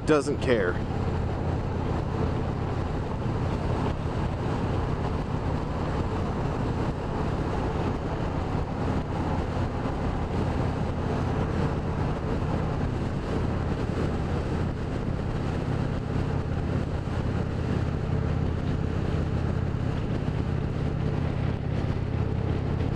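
A motorcycle engine rumbles steadily at cruising speed.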